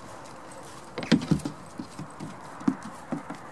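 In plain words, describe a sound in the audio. Small hooves clatter on a hollow wooden roof.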